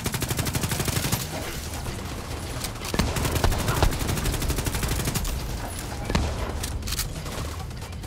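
Rapid gunfire rattles and booms nearby.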